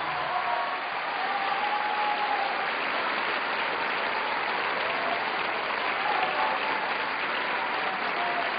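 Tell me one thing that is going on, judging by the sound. An orchestra plays in a large hall.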